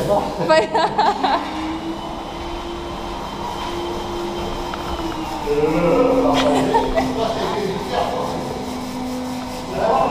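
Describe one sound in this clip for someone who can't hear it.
A vacuum cleaner hums steadily.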